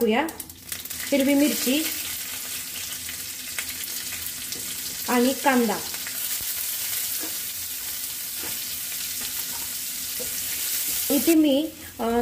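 Food sizzles loudly in hot oil in a pan.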